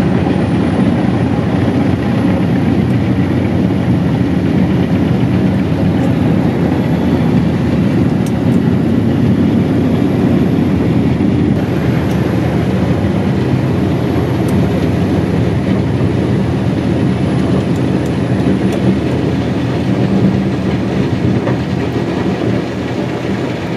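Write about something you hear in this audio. Wood chipping machinery grinds and roars outside.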